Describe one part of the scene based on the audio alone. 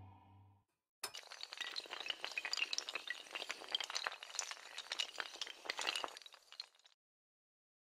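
Many dominoes topple and clatter against each other in a rapid run.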